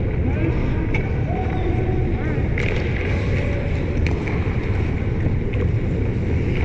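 Hockey sticks clack against pucks and ice.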